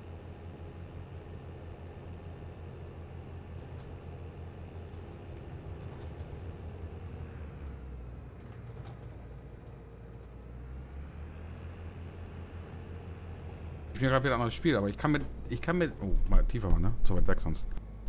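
A tractor engine hums steadily as it drives along.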